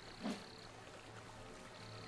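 Water rushes in a stream nearby.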